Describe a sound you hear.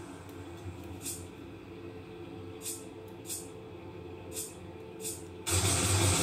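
Sharp shots crack from a video game playing through a television's speakers.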